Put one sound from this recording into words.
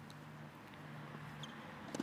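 A racket strikes a tennis ball with a sharp pop.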